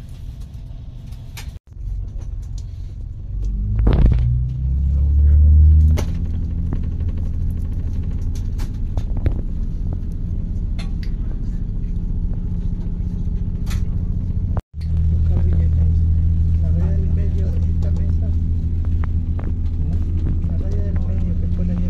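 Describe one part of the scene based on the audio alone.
A train's carriage rattles and clicks.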